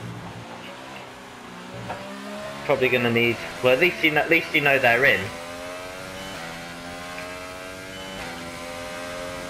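A racing car engine whines and rises in pitch as it speeds up through the gears.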